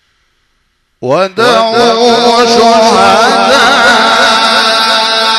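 A man chants loudly and melodically into a microphone, heard through loudspeakers.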